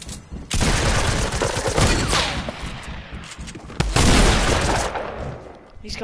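A shotgun fires loudly several times, each blast ringing out.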